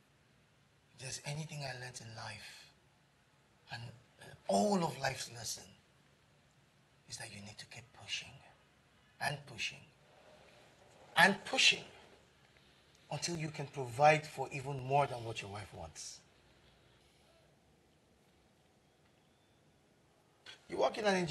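A man speaks calmly and seriously, close by.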